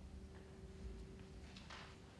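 A string quartet plays softly in a hall.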